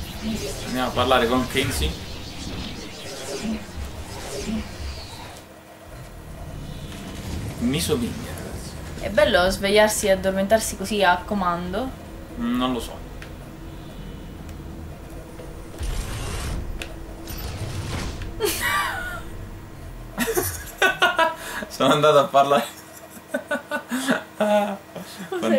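A young woman talks and laughs close to a microphone.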